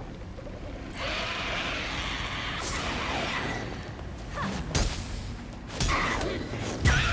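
A creature growls and snarls.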